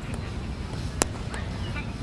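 A cricket bat strikes a ball with a single sharp crack, heard from a distance outdoors.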